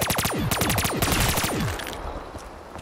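A gun fires in a rapid burst that rings out and fades.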